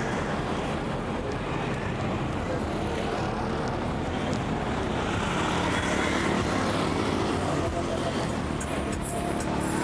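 Motorcycles ride past.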